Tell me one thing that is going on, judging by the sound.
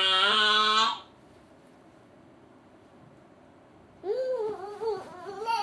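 A baby coos and squeals close by, in high, sing-song bursts.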